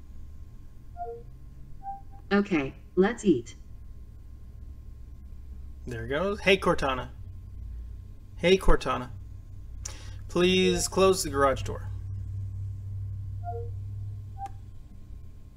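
A computer gives a soft, short electronic chime.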